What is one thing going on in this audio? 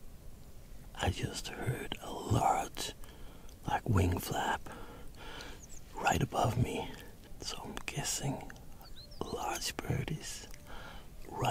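A man talks animatedly and close up, in a hushed voice.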